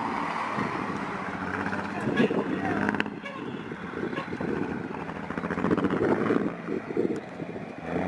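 Two school buses race away with engines roaring in the distance.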